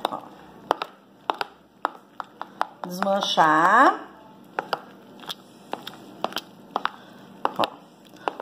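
A metal spoon clinks against a ceramic bowl while stirring a wet mixture.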